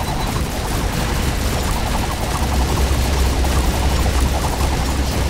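Deep booming rumbles steadily underneath.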